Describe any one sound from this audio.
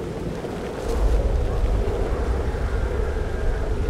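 Water splashes and churns as someone plunges in.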